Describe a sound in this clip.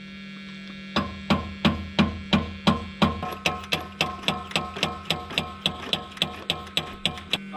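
A car engine ticks rapidly and evenly.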